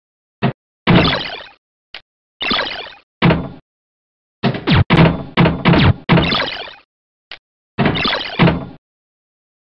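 A pinball game's bumpers ping and chime as the ball strikes them.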